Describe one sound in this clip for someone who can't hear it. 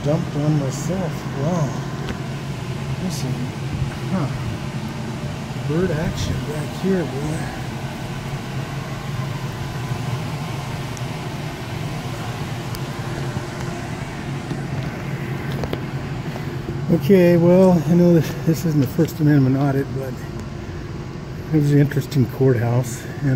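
An outdoor air conditioning unit hums steadily.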